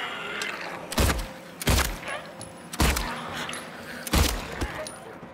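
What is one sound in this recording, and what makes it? A pistol fires several loud shots that echo.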